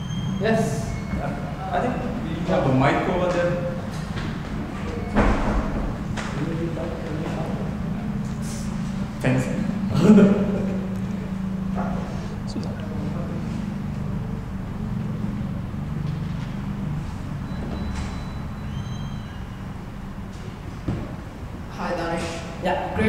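A man speaks calmly into a microphone, heard through loudspeakers in an echoing room.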